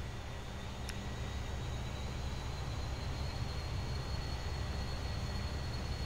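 A small propeller plane's engine hums as it lands.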